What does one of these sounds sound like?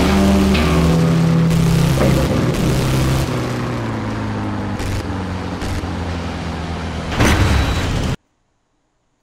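A buggy engine roars and revs as it drives over dirt.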